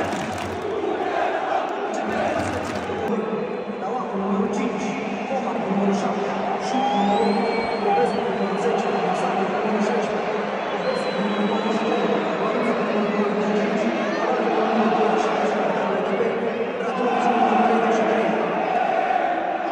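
A large stadium crowd chants and sings loudly in unison, echoing under the roof.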